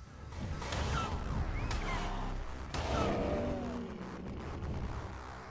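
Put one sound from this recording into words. Large wings beat heavily.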